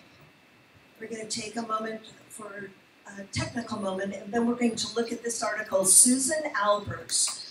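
A woman speaks into a microphone with animation, heard through loudspeakers in a large echoing room.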